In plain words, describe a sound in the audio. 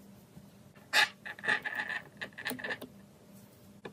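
A cable plug clicks and scrapes into a socket.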